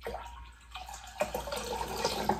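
Water pours from a glass jug into a bowl, splashing.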